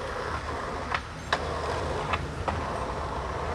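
A skateboard clacks as it lands on the road.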